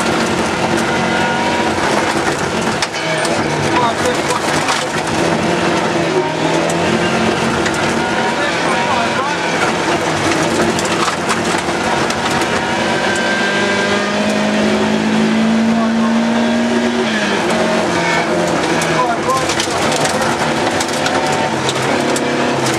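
Gravel and stones rattle under the tyres.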